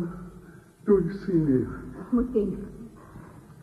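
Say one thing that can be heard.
A man speaks theatrically.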